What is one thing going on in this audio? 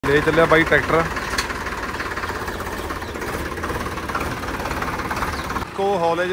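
A tractor's diesel engine chugs steadily close by.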